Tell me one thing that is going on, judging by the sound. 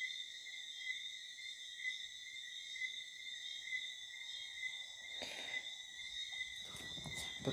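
A phone speaker plays a steady high-pitched tone that pulses evenly.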